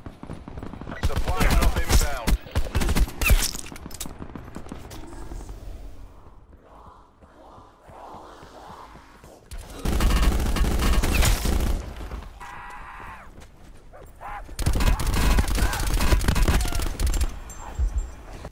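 Rapid gunfire bursts out loudly in short volleys.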